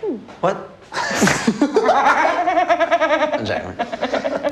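A young man laughs heartily close to a microphone.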